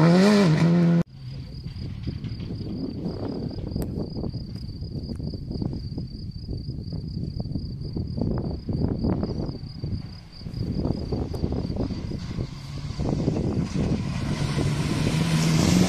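Wind blows across the microphone outdoors.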